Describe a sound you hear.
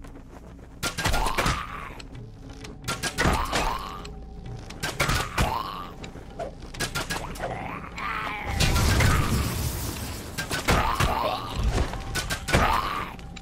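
Magic blasts whoosh and crackle during a fight.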